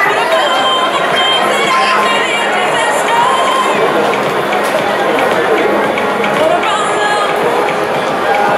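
A large stadium crowd cheers and chatters loudly in an echoing space.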